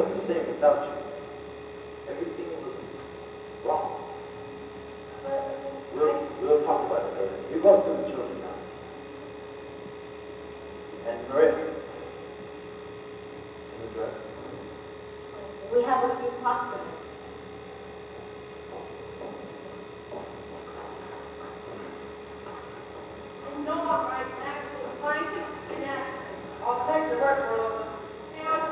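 A man speaks, heard from a distance in an echoing hall.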